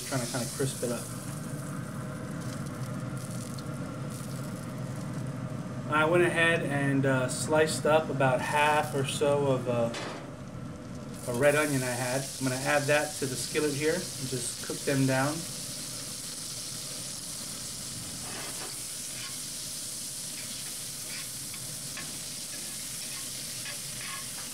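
Metal tongs scrape against a pan.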